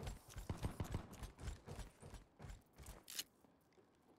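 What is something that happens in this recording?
Footsteps walk quickly across a hard floor.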